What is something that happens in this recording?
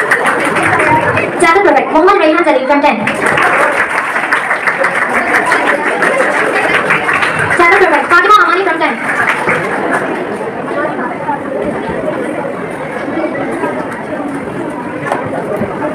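A crowd of people chatters in an echoing hall.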